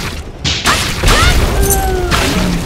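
An explosion bursts with a fiery crackle.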